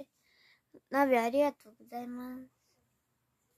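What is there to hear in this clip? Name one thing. A young girl speaks briefly in a high, sing-song voice close to a microphone.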